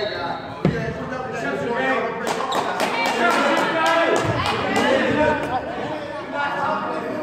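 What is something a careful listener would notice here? Sneakers squeak sharply on a gym floor.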